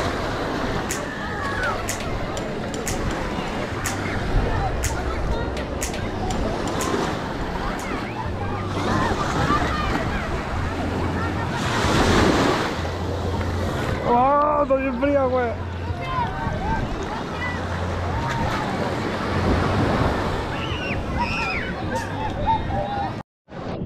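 A crowd of people chatters and calls out across a beach.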